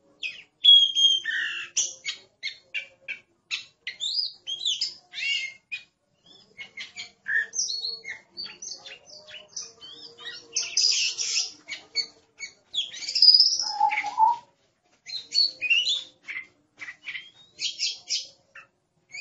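A songbird sings a varied, whistling song of quick chirps and trills close by.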